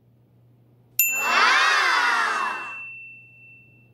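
A baby cries loudly.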